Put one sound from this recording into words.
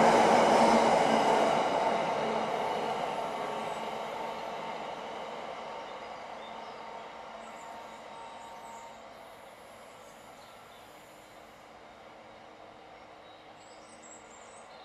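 A long freight train rumbles away down the tracks, its roar fading into the distance.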